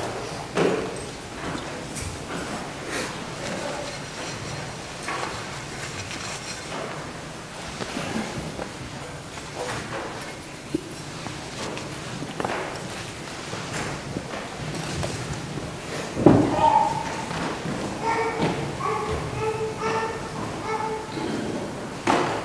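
An elderly man prays aloud in an echoing hall, then chants.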